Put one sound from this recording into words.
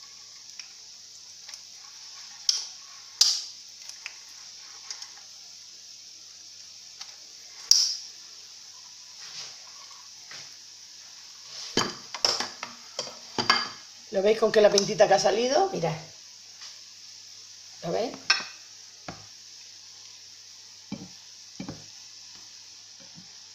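Dough fritters sizzle and bubble in hot oil.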